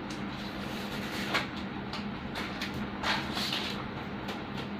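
A plastic wrapper crinkles in a hand.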